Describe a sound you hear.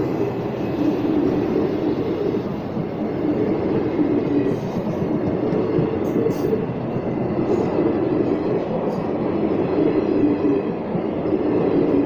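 A passenger train rushes past close by with a steady roar.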